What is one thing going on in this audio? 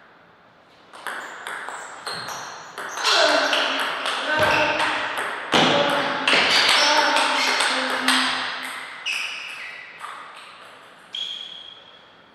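A ping-pong ball clicks quickly back and forth off paddles and a table, echoing in a large hall.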